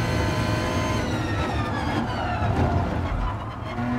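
A race car engine's pitch drops as the car slows down.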